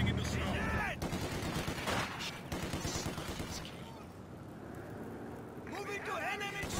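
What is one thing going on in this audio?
Gunfire crackles and explosions rumble in a distant battle.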